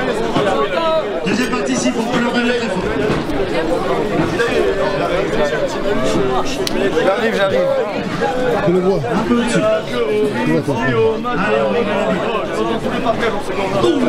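Many young people chatter and talk over one another nearby.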